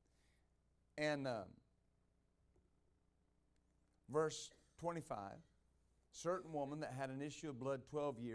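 A middle-aged man speaks calmly into a microphone, with pauses.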